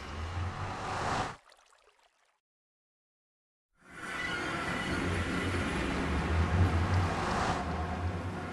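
A magical portal hums and whooshes loudly.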